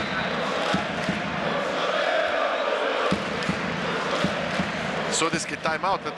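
A large crowd chants and cheers loudly in a big echoing hall.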